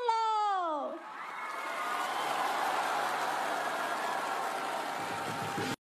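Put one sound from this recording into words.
A group of young women cheer loudly.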